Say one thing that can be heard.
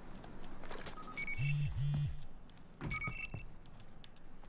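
Electronic beeps chime in quick pairs.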